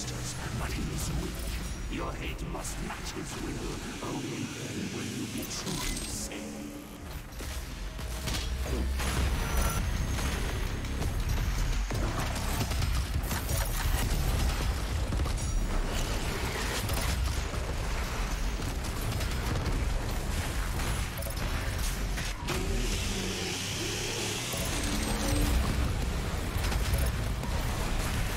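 Explosions boom and crash.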